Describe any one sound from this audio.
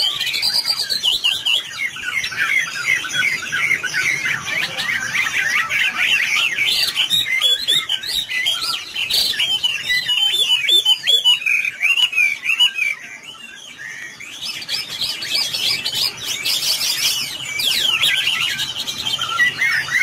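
A songbird sings a rapid, warbling song close by.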